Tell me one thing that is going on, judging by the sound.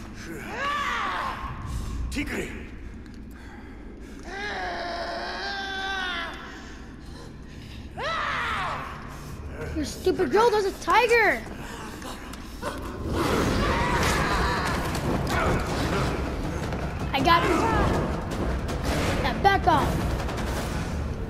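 A big cat snarls and roars loudly.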